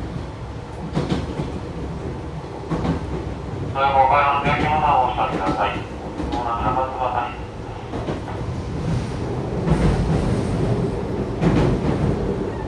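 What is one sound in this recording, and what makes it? Train wheels knock over rail joints now and then.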